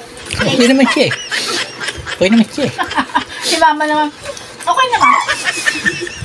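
A woman laughs loudly up close.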